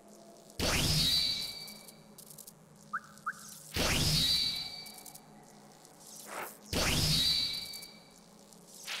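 Bright whooshing chimes ring out several times in a game.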